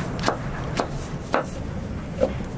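A knife chops vegetables on a wooden board.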